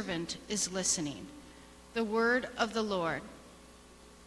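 A woman reads aloud through a microphone in a large echoing hall.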